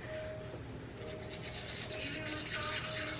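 A toothbrush scrubs rapidly against teeth.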